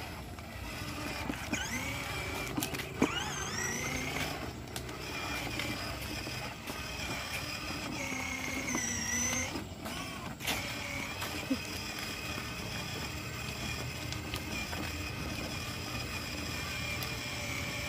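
Plastic wheels rumble over a concrete road.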